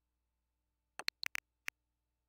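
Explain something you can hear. Short electronic menu clicks tick in quick succession.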